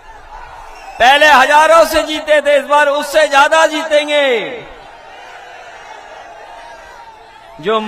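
A man shouts forcefully into a microphone through loudspeakers outdoors.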